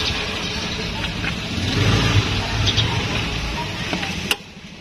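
Small clicks and taps sound as a seat cover is tucked in.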